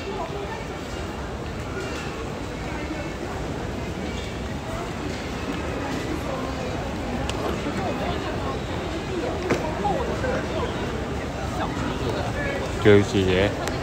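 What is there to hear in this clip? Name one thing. Footsteps echo in a large hall.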